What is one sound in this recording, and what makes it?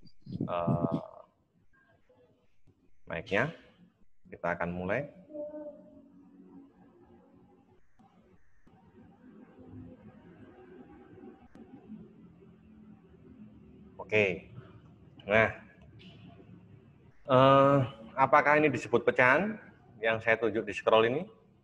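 A man speaks in short phrases over an online call.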